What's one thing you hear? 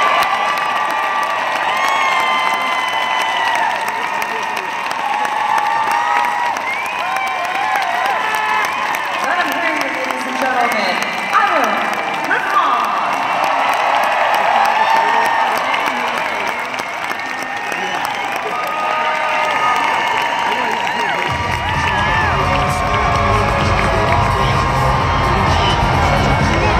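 A large crowd cheers, shouts and whistles in a big echoing arena.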